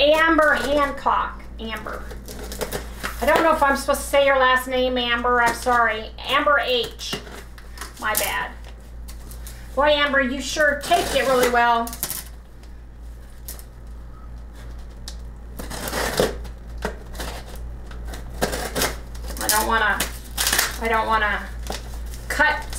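Cardboard rustles and tears as a box is opened.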